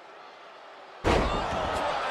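A body slams hard onto the wrestling mat with a loud thud.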